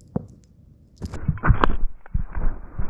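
A dog thumps onto the grass close by.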